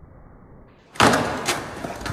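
A skateboard clatters sharply against the ground.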